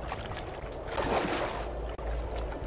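A character splashes into water.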